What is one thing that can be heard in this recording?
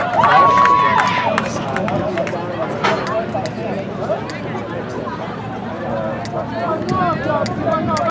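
A crowd of spectators chatters nearby outdoors.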